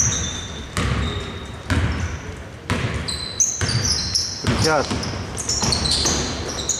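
A basketball bounces in steady dribbles in a large echoing hall.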